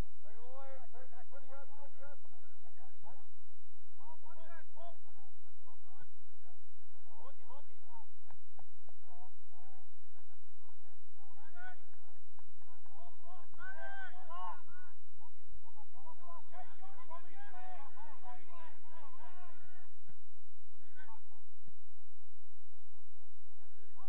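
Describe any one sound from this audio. Young men shout to each other far off across an open field.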